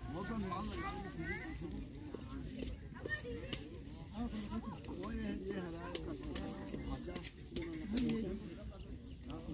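Several women talk and chant close by outdoors.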